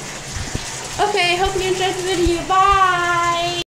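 A young girl talks loudly and excitedly close by.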